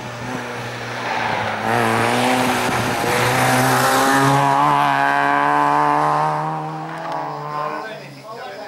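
A rally car engine roars and revs hard as it accelerates through gear changes, then fades away.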